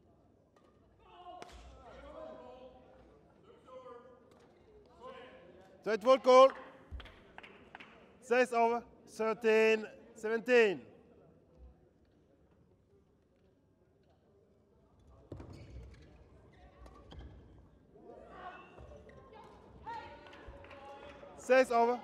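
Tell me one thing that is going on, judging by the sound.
A shuttlecock is struck back and forth with rackets in a large echoing hall.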